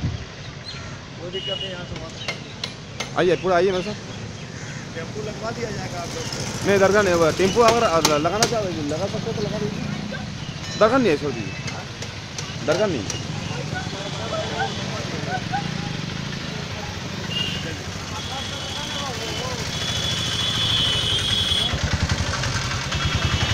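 Motorbike and autorickshaw engines rumble along a busy street outdoors.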